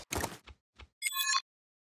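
Short electronic beeps chime from a game menu.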